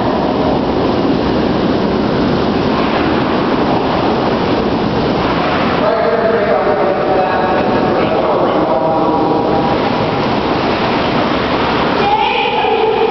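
Bubbling water churns loudly and steadily.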